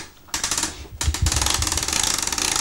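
A music box plays a tinkling tune.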